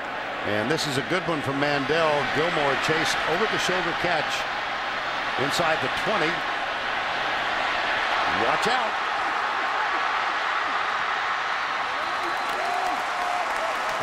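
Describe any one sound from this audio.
A large crowd cheers and roars loudly outdoors.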